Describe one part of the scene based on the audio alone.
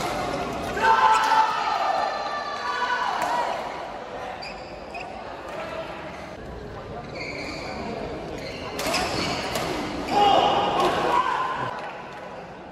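Men shout and cheer on the court.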